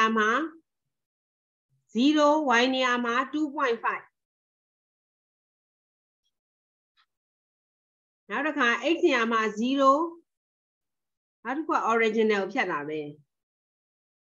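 A middle-aged woman speaks calmly in short phrases over an online call.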